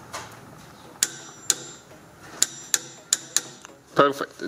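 A torque wrench clicks sharply several times as a bolt is tightened.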